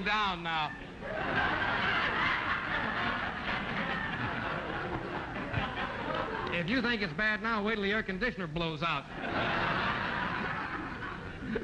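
A studio audience laughs and applauds.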